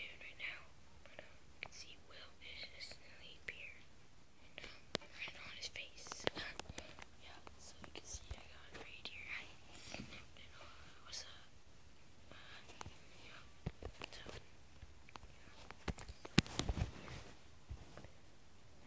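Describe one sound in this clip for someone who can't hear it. A phone knocks and rubs as it is handled.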